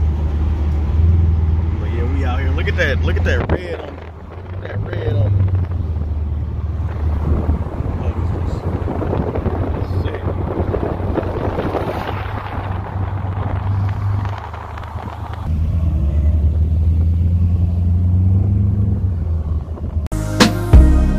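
Wind rushes past an open car.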